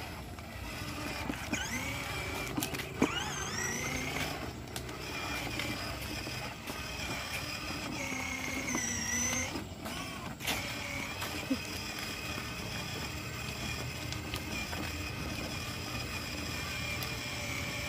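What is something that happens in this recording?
A small electric toy car's motor whirs steadily.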